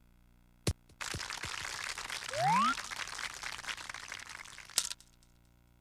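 A golf ball rolls along grass with a soft rushing sound.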